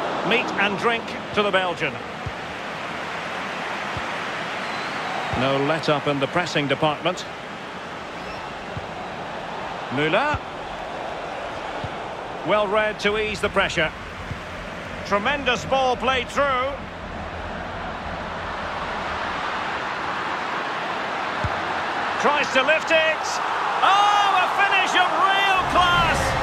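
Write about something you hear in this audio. A stadium crowd roars steadily and swells into loud cheering near the end.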